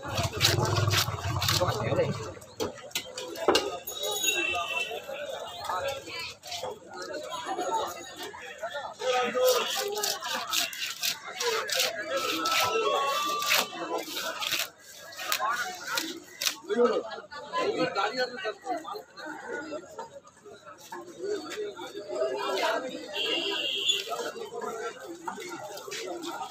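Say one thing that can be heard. Fish are chopped and scraped against a blade with wet knocks.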